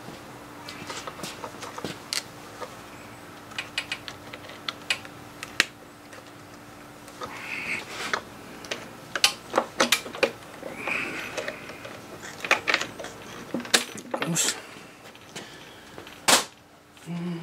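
Metal parts click and clink on a small engine.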